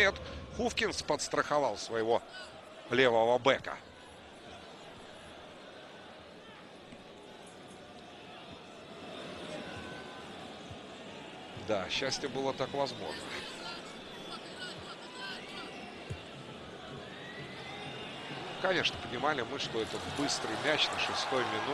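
A large stadium crowd murmurs and chants steadily in the distance.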